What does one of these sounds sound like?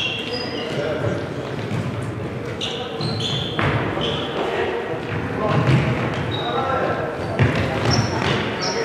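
Players' footsteps thud and shuffle in a large echoing hall.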